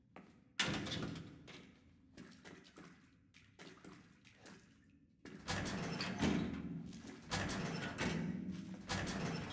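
A man talks into a close microphone with animation.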